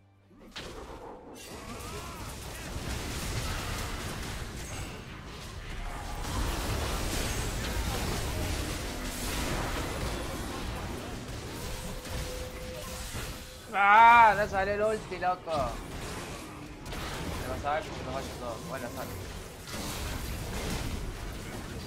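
Magic spells whoosh and crackle during a fast fight.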